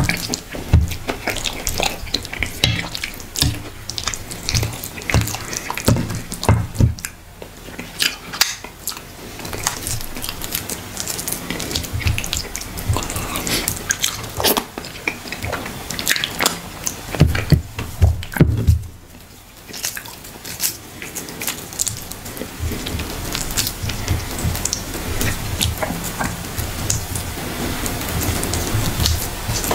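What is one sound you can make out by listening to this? Fingers squish and squelch through soft, saucy food close up.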